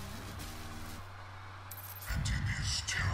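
A deep electronic hum drones steadily.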